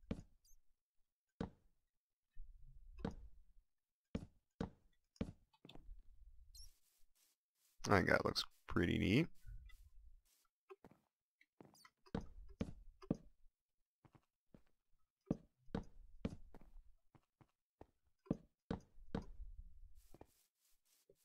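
Wooden blocks thud softly as they are placed, one after another.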